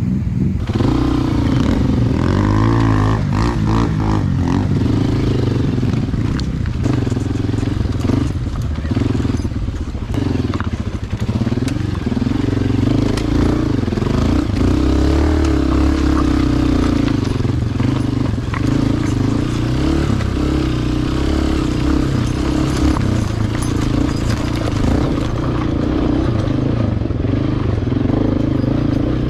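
Stones crunch and clatter under tyres on rough ground.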